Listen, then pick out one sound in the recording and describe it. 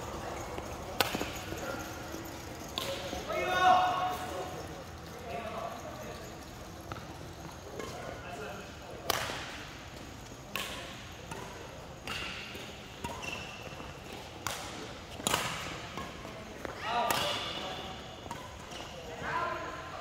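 Shuttlecocks are struck with sharp racket pops in a large echoing hall.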